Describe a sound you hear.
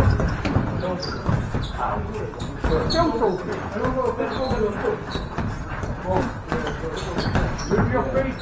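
Boxing gloves thud against each other in sparring.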